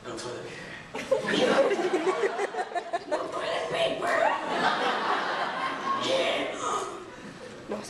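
An audience laughs and claps.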